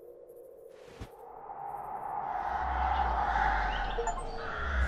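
Flower stems rustle as they are set down.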